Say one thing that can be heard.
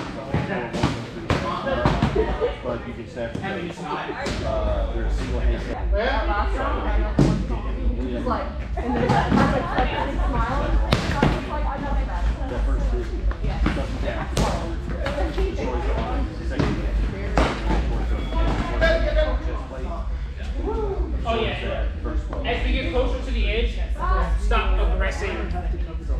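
Several men and women talk and call out nearby, echoing in a large hall.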